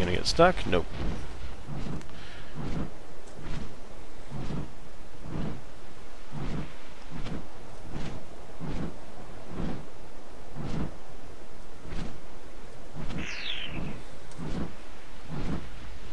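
Wings flap in a steady, even rhythm.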